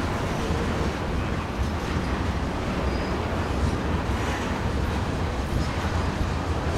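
Steel wheels squeal faintly on the rails.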